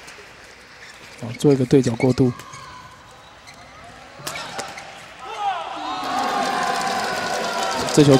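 A racket strikes a shuttlecock in sharp, quick hits.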